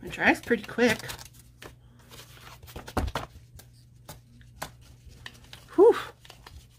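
A notebook's stiff cover and pages rustle and tap as they are handled close by.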